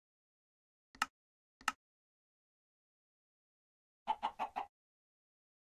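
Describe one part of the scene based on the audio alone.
Soft clicks sound a few times.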